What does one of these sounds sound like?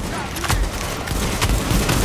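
Rapid gunfire rattles loudly in an echoing space.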